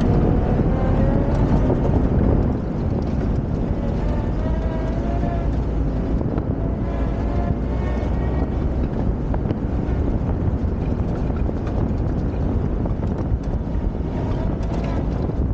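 A car engine rumbles steadily while driving over rough ground.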